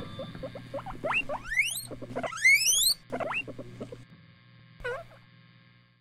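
A guinea pig squeals with high rising whistles.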